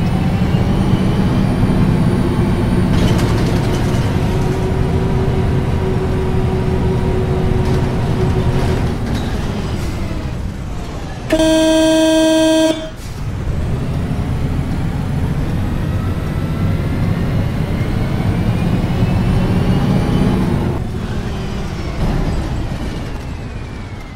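A bus engine rumbles steadily while driving, rising and falling in pitch.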